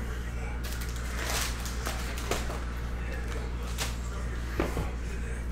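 Cardboard packs rustle and scrape as they are handled.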